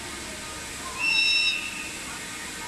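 A train horn sounds briefly in the distance.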